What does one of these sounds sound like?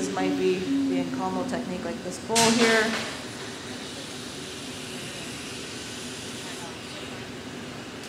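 A gas torch hisses steadily.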